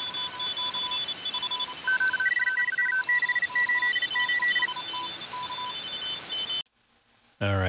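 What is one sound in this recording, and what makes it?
Radio static hisses loudly, then cuts off abruptly.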